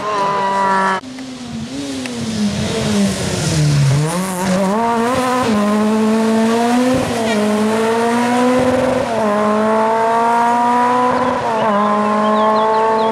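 A second rally car's engine roars past and revs up through the gears as it drives away.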